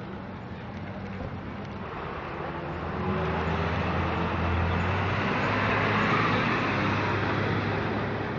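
A crowd of men and women murmur and talk outdoors.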